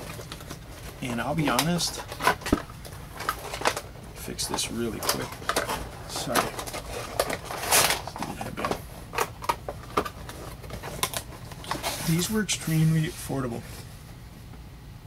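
A cardboard box rustles and taps as it is handled.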